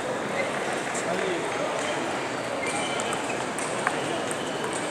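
Table tennis balls click against tables and paddles.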